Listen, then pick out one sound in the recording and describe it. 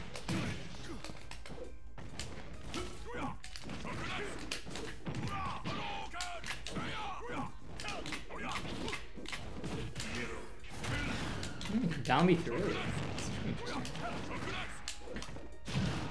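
Fighting game hits and blasts thump and crack.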